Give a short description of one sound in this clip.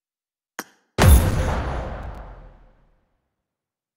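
A game menu gives a loud whoosh that quickly fades.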